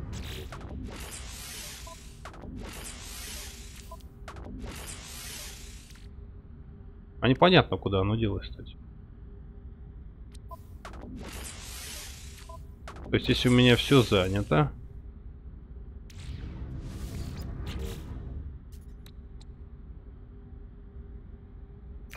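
Soft electronic whooshes sound as game menu tabs switch.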